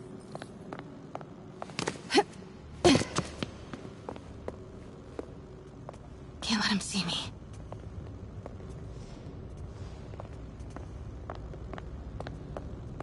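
Soft footsteps patter on a stone floor.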